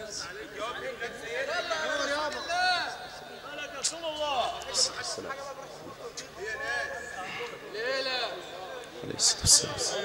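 A man chants melodically through a loudspeaker microphone in a large reverberant space.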